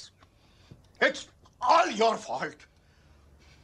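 A middle-aged man shouts angrily, close by.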